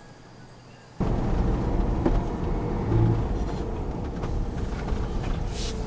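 A car engine hums as the car drives along.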